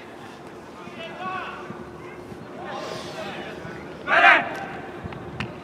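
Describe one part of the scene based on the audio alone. Young men shout and cheer across an open field in the distance.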